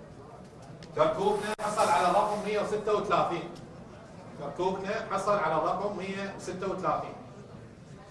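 A man announces loudly and clearly into a microphone.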